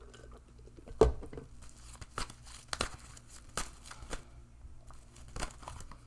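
Cards rustle and tap as they are shuffled by hand.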